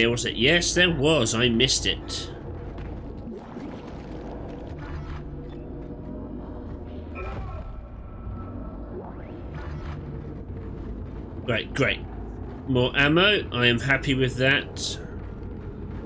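A man talks loudly and with animation into a close microphone.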